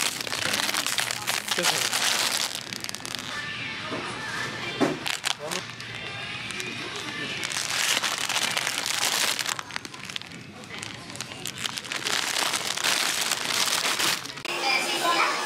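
Plastic packaging crinkles and rustles in a hand.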